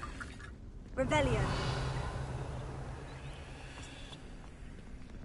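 A magic spell bursts with a shimmering whoosh that slowly fades.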